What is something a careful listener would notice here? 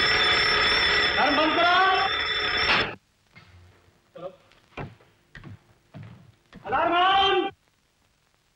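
A man shouts commands loudly.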